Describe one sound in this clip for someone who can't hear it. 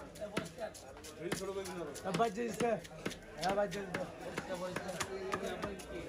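A knife chops sharply against a wooden block.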